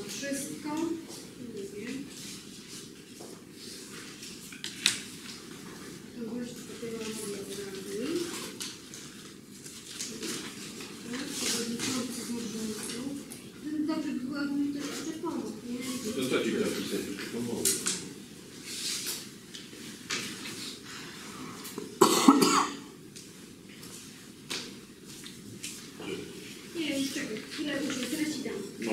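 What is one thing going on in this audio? A woman speaks calmly to a small group.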